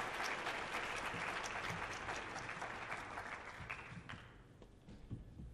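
A piano plays on a stage.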